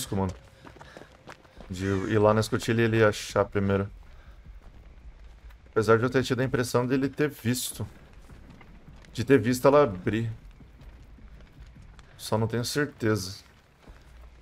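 A young man talks with animation close to a microphone, in bursts.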